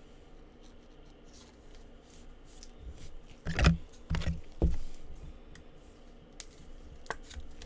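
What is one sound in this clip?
A plastic sleeve crinkles and rustles as a card is pulled out.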